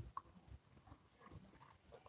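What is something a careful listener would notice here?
A woman sips a drink.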